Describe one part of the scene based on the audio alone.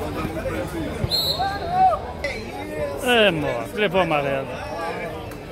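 Men shout and call out on an outdoor playing field.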